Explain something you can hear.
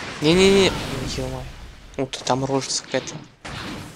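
Rocks crash and scatter in an explosion.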